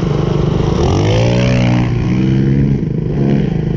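A dirt bike engine revs up and rises in pitch.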